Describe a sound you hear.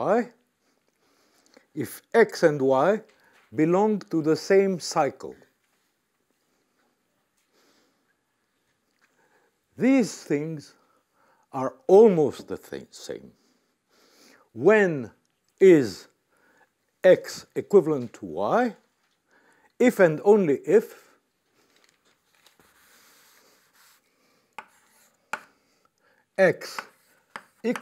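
An elderly man lectures calmly, speaking in short bursts with pauses.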